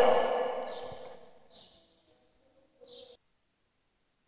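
A man preaches with feeling into a microphone in an echoing hall.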